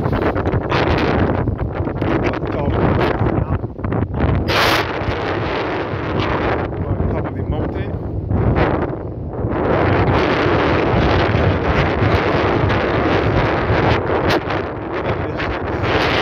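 Strong wind roars and buffets the microphone outdoors.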